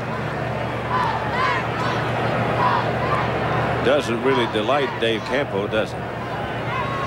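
A middle-aged man shouts angrily nearby.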